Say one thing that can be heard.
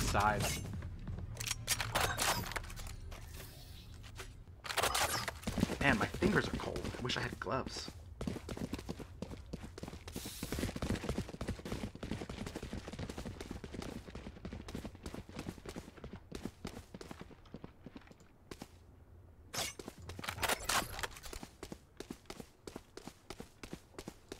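Quick footsteps patter on a hard floor.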